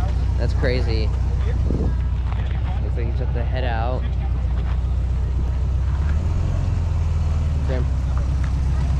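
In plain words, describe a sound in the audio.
Men chat casually nearby outdoors.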